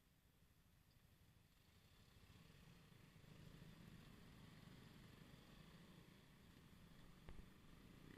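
Motorcycle engines idle and rumble nearby.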